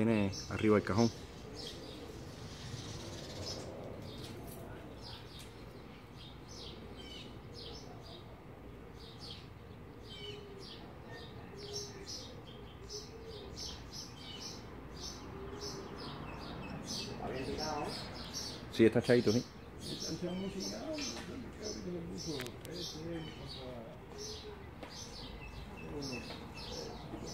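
A pigeon coos softly nearby.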